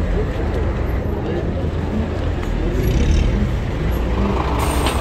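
A car engine hums at idle close by.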